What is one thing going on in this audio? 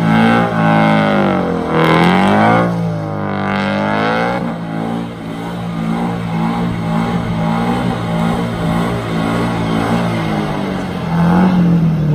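Tyres screech as a car spins in tight circles.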